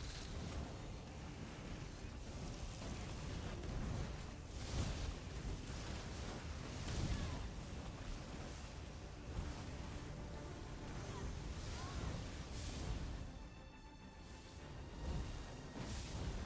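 Lightning spells crackle and boom in bursts.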